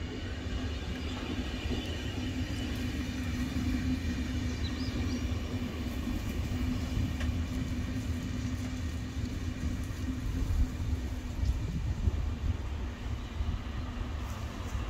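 A locomotive engine hums steadily.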